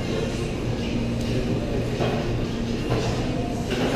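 A man talks into a phone nearby.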